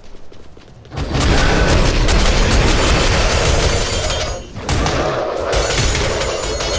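Magic blasts and weapon hits crash loudly in a fight.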